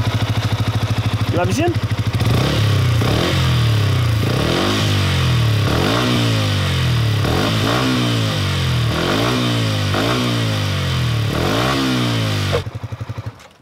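A motorcycle engine revs up and down loudly, over and over, close by.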